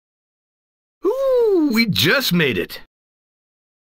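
A young man speaks breathlessly, close by.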